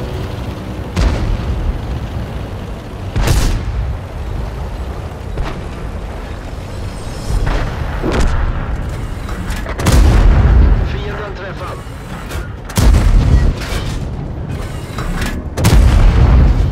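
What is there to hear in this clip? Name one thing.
A tank cannon fires with loud, booming blasts.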